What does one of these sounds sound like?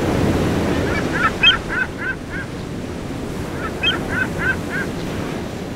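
A seagull calls out in a series of short cries.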